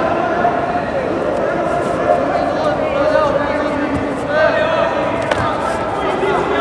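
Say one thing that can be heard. A crowd of men and women chatters and calls out in a large echoing hall.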